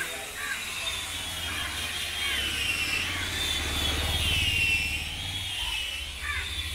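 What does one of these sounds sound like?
A motorbike engine rumbles past close by.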